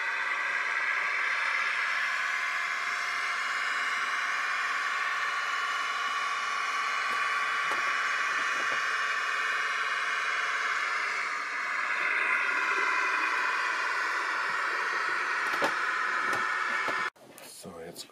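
A model train hums steadily as it runs along the track.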